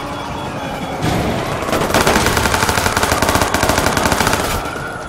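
An explosion roars and crackles with fire.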